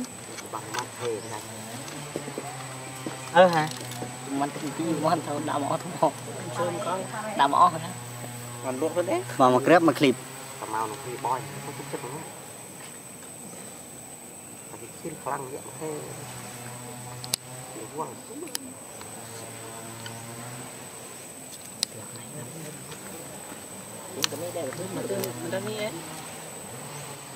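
A baby monkey squeals and whimpers close by.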